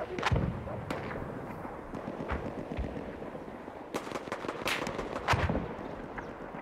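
Heavy explosions boom and rumble.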